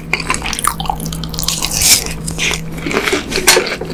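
A man bites into soft food close to a microphone.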